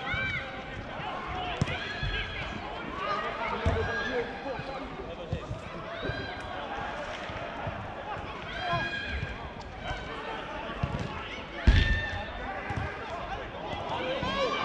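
Several men shout and call out to each other across an open outdoor pitch.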